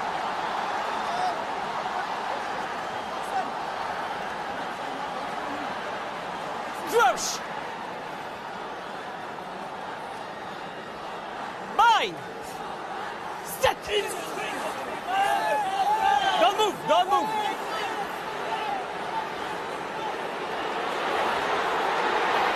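Children chatter and exclaim excitedly close by.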